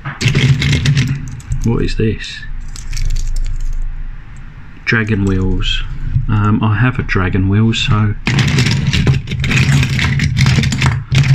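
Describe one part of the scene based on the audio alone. Small metal toy cars clink and rattle as they are handled.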